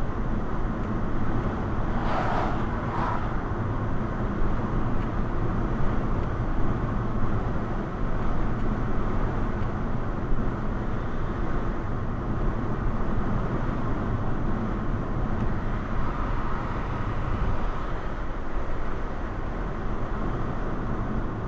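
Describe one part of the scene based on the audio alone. Tyres roll steadily on a road, heard from inside a moving car.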